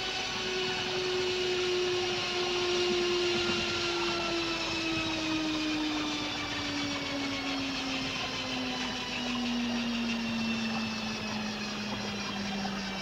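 A spacecraft hums with a steady whine that slowly falls in pitch as it descends and lands.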